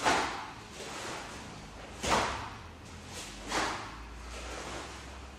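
Bare feet thump and shuffle on a mat.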